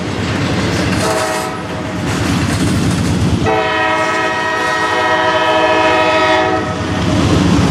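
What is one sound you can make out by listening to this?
A locomotive horn blares loudly in long blasts.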